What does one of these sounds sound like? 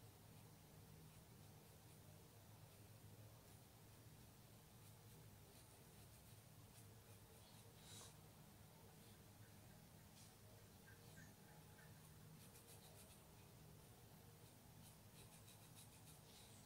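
A paintbrush softly brushes across fabric.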